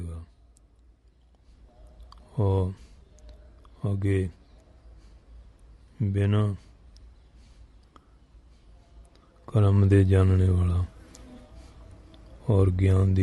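An elderly man speaks slowly into a microphone in short, drawn-out phrases with pauses between them.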